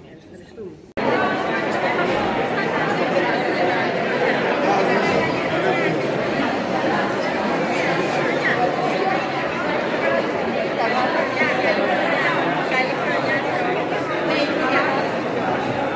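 A crowd of men and women chatter loudly all around.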